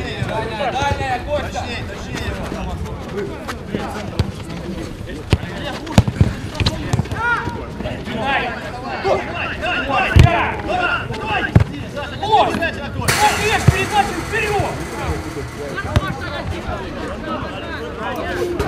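Men shout and call out to each other across an open pitch outdoors.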